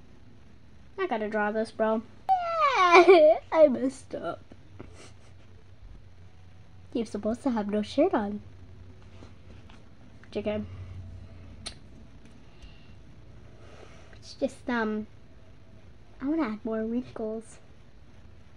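A young girl talks with animation close to a microphone, in short bursts.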